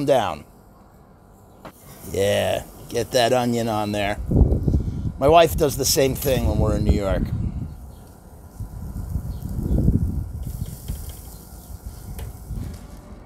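Meat sizzles softly on a hot grill.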